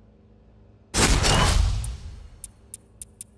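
A purchase chime sounds with a loud whoosh.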